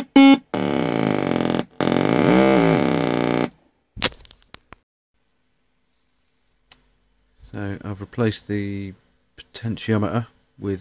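Fingers push wires into a plastic circuit board with small clicks.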